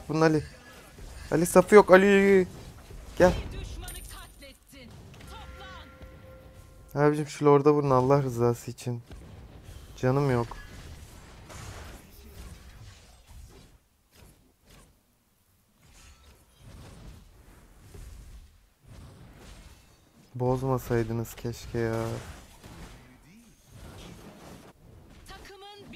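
Magic blasts and explosions crackle in a fight.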